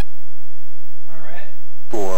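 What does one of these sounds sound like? A quick electronic tone sounds as a selection is made.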